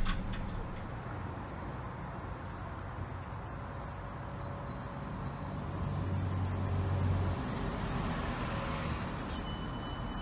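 A distant train approaches with a low hum.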